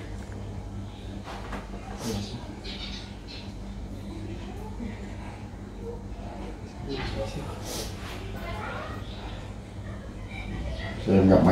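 A middle-aged man speaks nearby.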